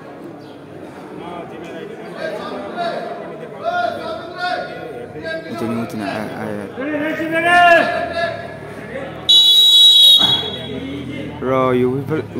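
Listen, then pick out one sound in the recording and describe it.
Young men shout and call out across an echoing indoor pitch.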